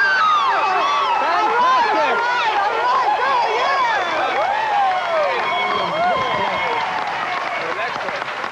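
An audience claps.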